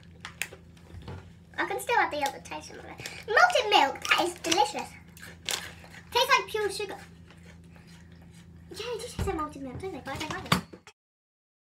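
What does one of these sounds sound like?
Two young girls talk and laugh together close by.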